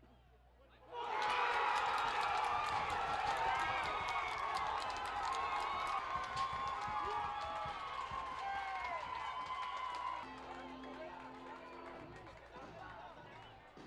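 A large crowd roars and cheers loudly outdoors.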